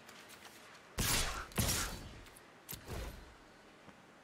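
Game sound effects burst loudly as creatures attack.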